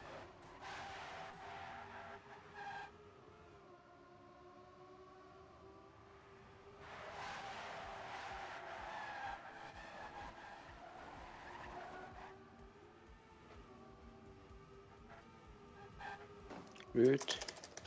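A racing car engine whines steadily at high revs, rising and falling in pitch.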